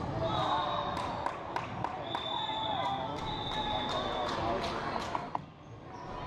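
A basketball bounces repeatedly on the floor.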